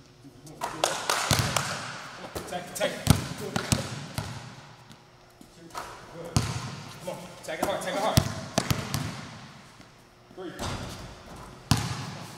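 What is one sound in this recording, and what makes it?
A basketball clangs off a metal rim.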